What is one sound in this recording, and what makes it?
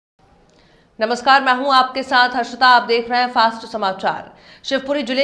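A young woman reads out news calmly into a microphone.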